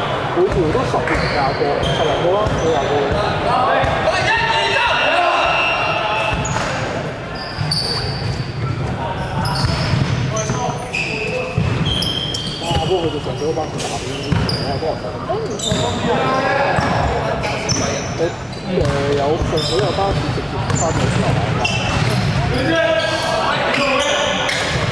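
Shoes squeak sharply on a hard floor in a large echoing hall.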